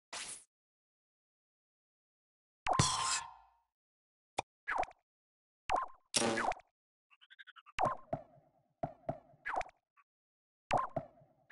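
Short electronic menu sounds swoosh and click.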